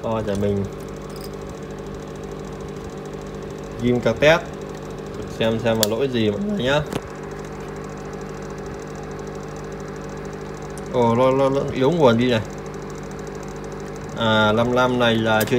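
A computer fan hums steadily.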